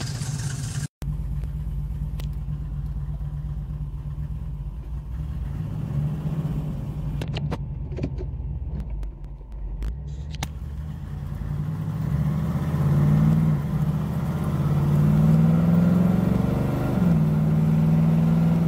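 A car engine revs and pulls away, rising in pitch as the car speeds up.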